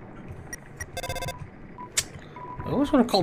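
A short electronic beep sounds as a menu opens.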